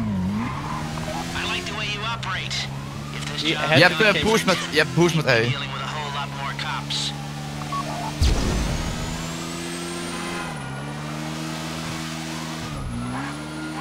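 A motorbike engine hums steadily, its pitch dipping and rising as it shifts gears.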